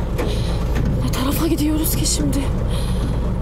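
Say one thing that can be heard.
A young woman gasps and whimpers softly.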